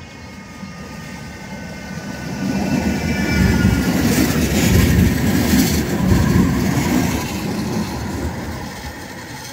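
A tram rumbles past close by on rails.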